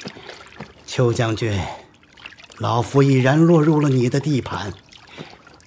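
An elderly man speaks slowly and gravely, close by.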